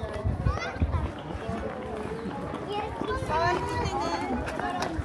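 Children and adults chatter nearby outdoors.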